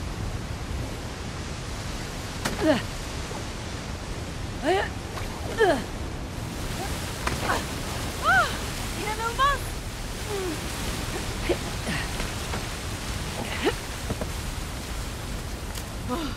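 A waterfall rushes steadily.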